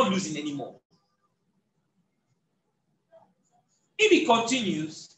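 A young man speaks with animation, close by, explaining something.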